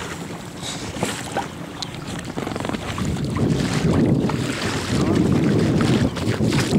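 Wind blows hard across open water.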